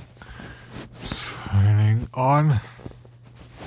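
A man exclaims loudly in drawn-out tones, close to a phone microphone.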